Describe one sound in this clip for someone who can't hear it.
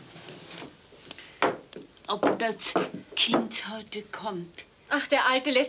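A woman speaks sharply nearby.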